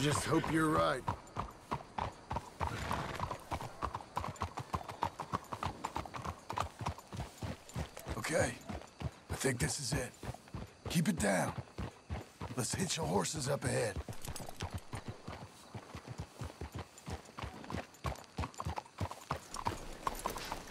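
Horse hooves clop steadily on a dirt road.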